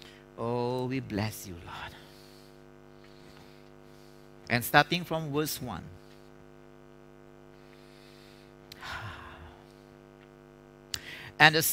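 A man reads aloud through a microphone in a large room, pausing between phrases.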